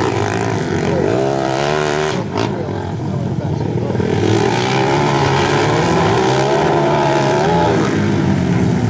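A quad bike engine revs up and down sharply.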